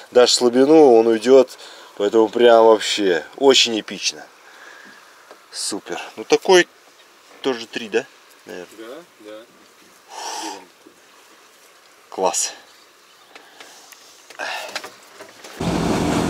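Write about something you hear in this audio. A man talks close up with animation.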